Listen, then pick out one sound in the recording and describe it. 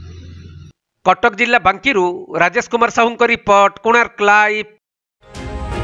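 A man speaks loudly up close.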